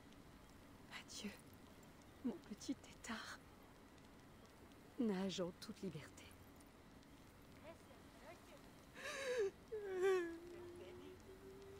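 A woman speaks softly and calmly.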